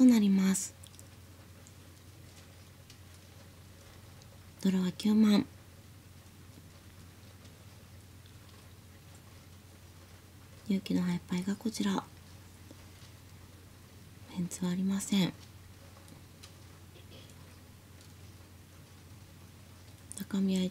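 A young woman calls out briefly and clearly, close by.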